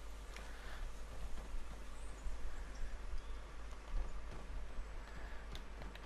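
Footsteps thud on wooden stairs.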